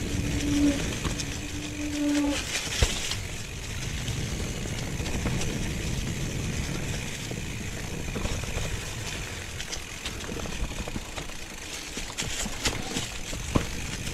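Bicycle tyres crunch and rustle over dry leaves on a dirt trail.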